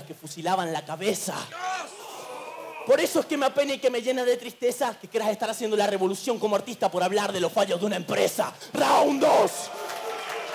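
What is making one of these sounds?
A young man raps forcefully into a microphone over loudspeakers.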